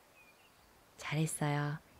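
A young girl speaks briefly nearby.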